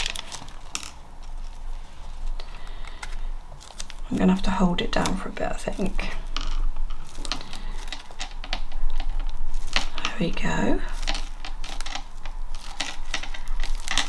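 Paper rustles and crinkles as it is handled up close.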